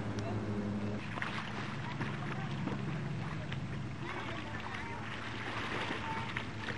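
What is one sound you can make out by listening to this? A jet ski engine whines in the distance.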